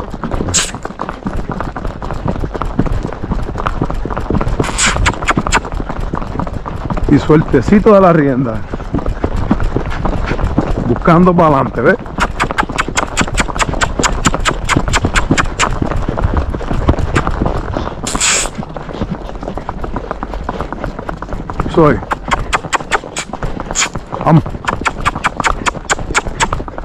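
A horse's hooves clop steadily on pavement.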